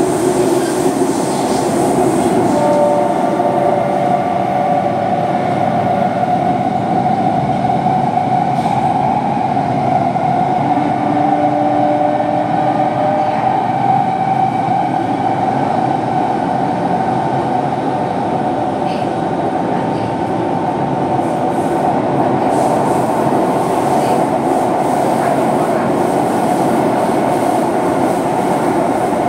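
A subway train rumbles and hums steadily as it runs.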